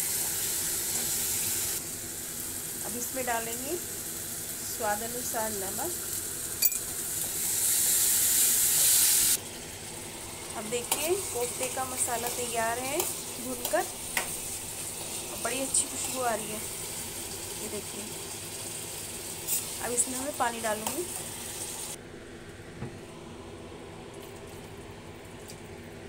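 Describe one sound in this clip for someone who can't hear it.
A spoon scrapes and knocks against a pan.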